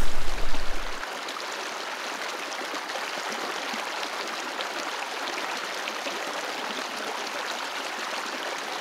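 Shallow water trickles softly.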